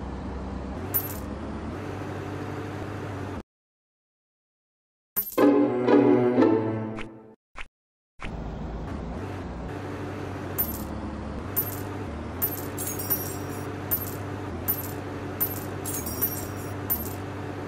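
Short bright chimes ring as coins are picked up.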